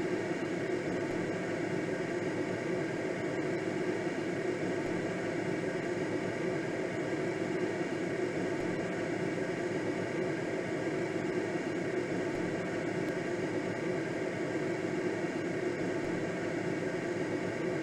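Wind rushes steadily past a gliding aircraft.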